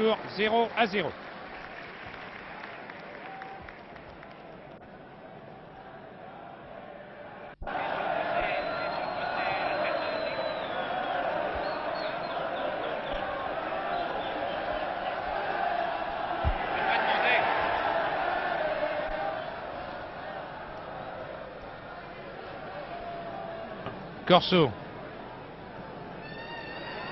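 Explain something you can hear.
A large stadium crowd roars and murmurs in the distance.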